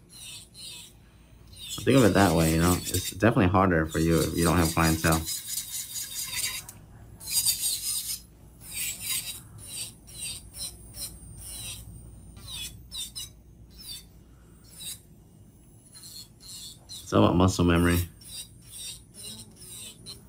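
An electric nail drill whirs and grinds against a fingernail.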